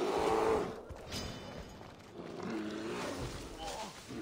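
A bear growls nearby.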